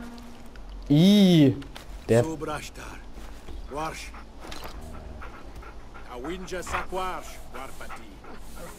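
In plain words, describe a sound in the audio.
A wolf whines and whimpers close by.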